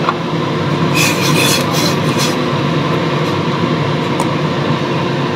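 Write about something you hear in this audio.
Metal tongs scrape and clink against the side of a pot.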